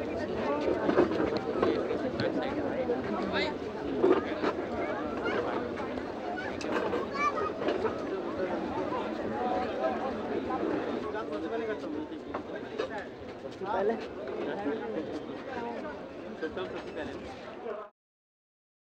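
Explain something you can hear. A large crowd of men and women chatters outdoors.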